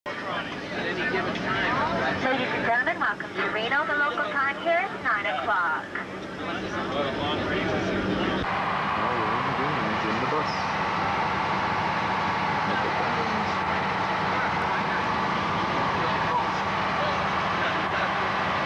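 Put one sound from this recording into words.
A vehicle's engine hums steadily from inside.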